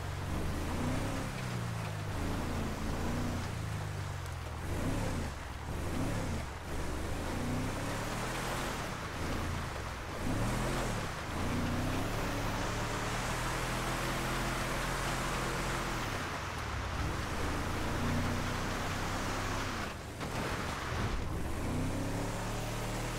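A car engine revs up and down as the vehicle drives.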